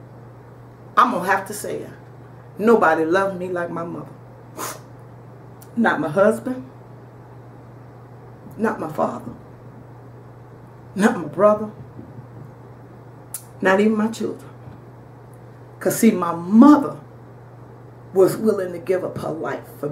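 A middle-aged woman speaks calmly into a microphone, in short phrases with pauses.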